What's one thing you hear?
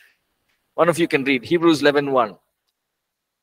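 A man speaks briefly into a microphone, close and clear.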